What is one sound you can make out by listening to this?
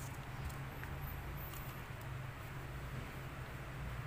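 A small pebble taps down on a soft mat.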